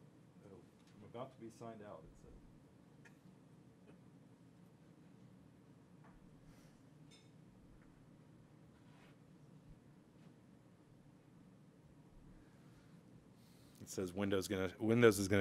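A middle-aged man speaks into a microphone.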